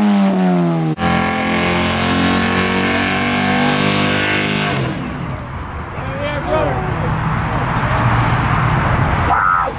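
Tyres screech loudly in a burnout.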